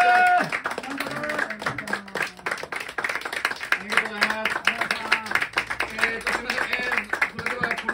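Audience members clap along in rhythm.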